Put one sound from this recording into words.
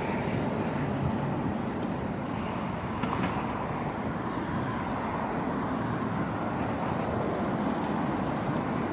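Cars drive by on a nearby city street.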